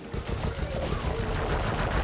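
A fiery blast bursts and roars.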